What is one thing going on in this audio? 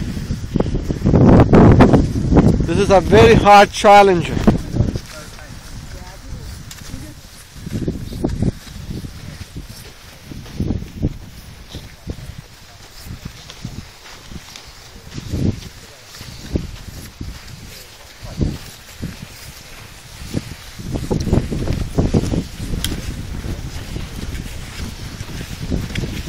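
Strong wind gusts roar against the microphone outdoors.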